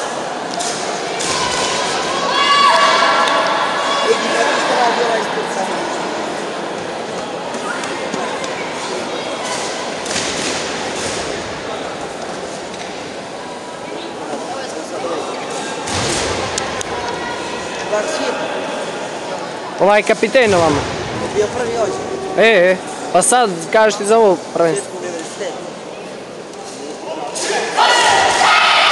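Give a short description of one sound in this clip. A crowd of people murmurs and talks in a large echoing hall.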